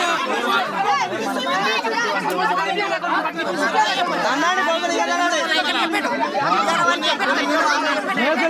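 A crowd of men and women shout and argue loudly close by.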